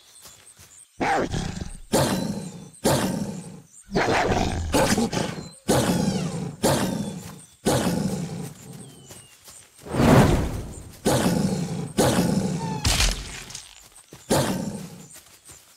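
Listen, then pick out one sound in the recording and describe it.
A wolf growls and snarls while fighting another animal.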